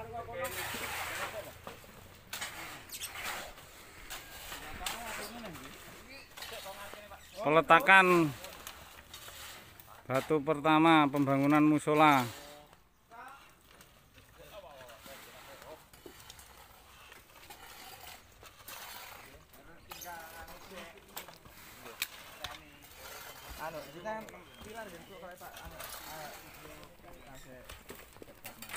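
Several men chat outdoors in the background.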